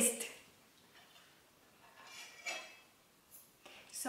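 A fork scrapes against a plate.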